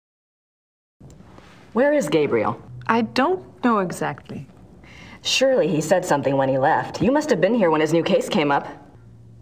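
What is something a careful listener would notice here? A younger woman answers with animation.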